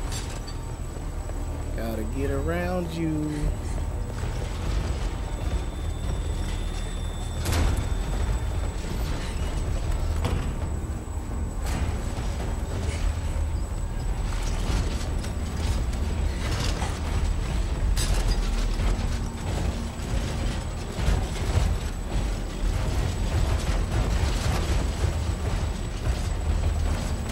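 Quick footsteps run across hard floors and up stairs.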